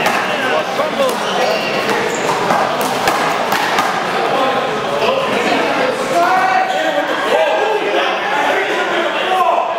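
A ball thuds against a wall.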